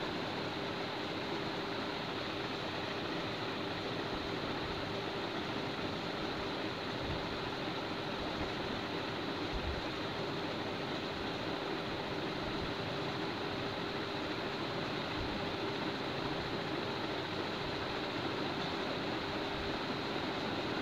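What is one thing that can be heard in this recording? Pigeons coo and flutter nearby.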